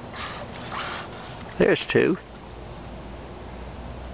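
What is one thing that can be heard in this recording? A dolphin breathes out with a short, sharp puff as it surfaces close by.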